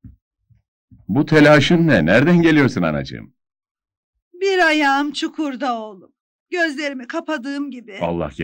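An elderly woman speaks loudly and emotionally nearby.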